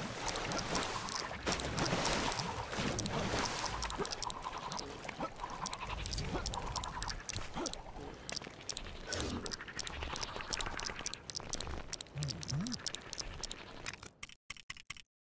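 A figure runs at super speed with a crackling whoosh.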